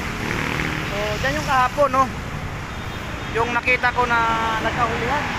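A man speaks nearby, outdoors by a road.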